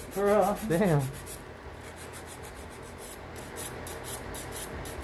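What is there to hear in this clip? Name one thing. A nail file rasps back and forth in quick, even strokes.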